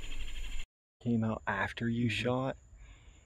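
A second man speaks with animation, close by.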